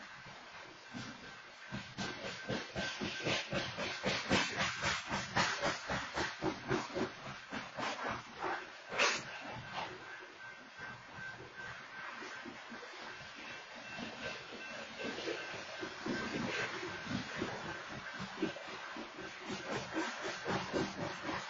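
Freight cars rumble and clatter past on the rails close by.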